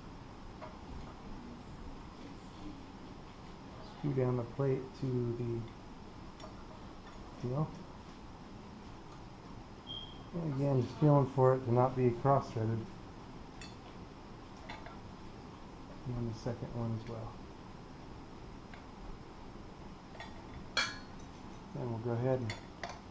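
A metal bar clicks and rattles as hands handle it.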